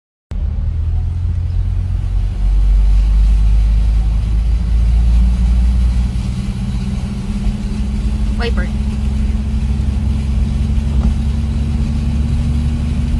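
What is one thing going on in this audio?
A car engine hums low and steady from inside the vehicle.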